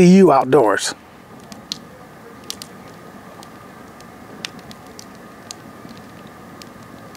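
A wood fire crackles and pops softly.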